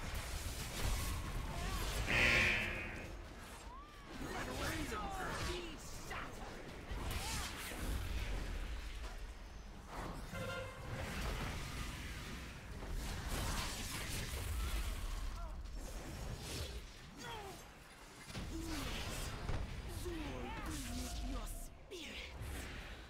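Spell effects crackle and whoosh during a fight.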